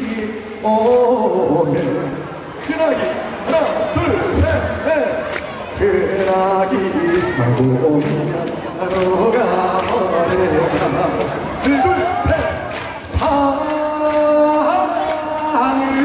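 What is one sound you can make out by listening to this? A young man sings into a microphone, heard through loudspeakers outdoors.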